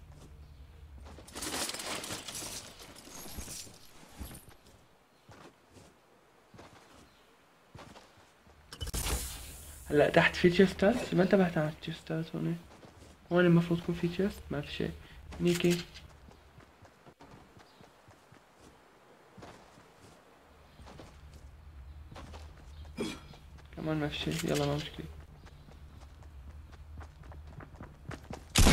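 Footsteps run over wooden boards and dirt.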